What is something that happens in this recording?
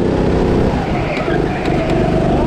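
Go-kart tyres squeal through a corner.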